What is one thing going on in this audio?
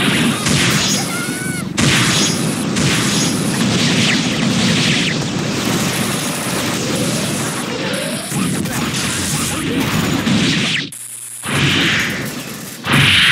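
Rapid game hit effects crash and clatter in quick succession.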